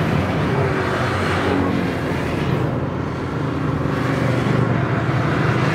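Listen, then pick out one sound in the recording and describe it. A long line of motorcycles rumbles past, engines droning steadily.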